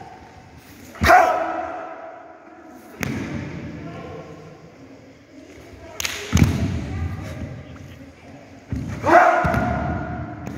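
Two young men shout sharply together in a large echoing hall.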